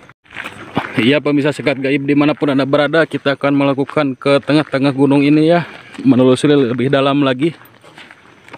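A man chants loudly and steadily nearby.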